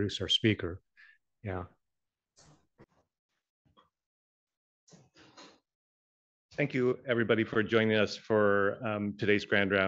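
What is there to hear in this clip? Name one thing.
A man speaks through a microphone in a lecture, pausing between phrases.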